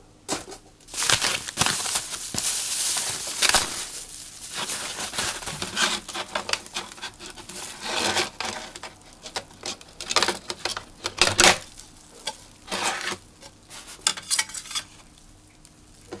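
Plastic foam wrap rustles and crinkles loudly.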